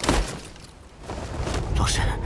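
Someone rushes past with a loud whoosh.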